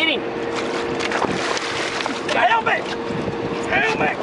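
Water sloshes against the side of a boat.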